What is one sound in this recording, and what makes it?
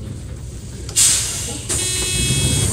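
A bus door opens with a sharp hiss of air.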